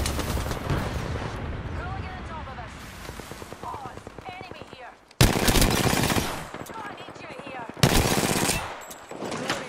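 Rapid gunshots crack loudly.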